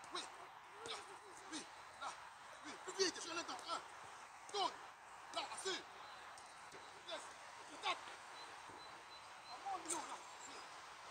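Footballs thump as they are kicked on grass.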